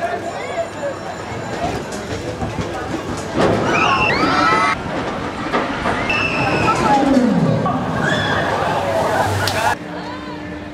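Riders scream on a drop tower ride.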